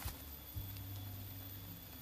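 Dry leaves rustle faintly as a hand brushes the forest floor.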